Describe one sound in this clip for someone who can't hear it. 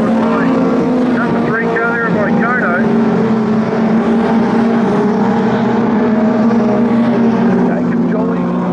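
Race car engines roar loudly.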